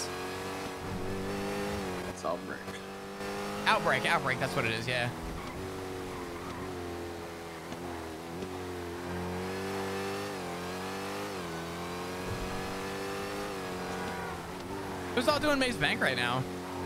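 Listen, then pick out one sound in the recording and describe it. A car engine roars and revs as the car speeds along.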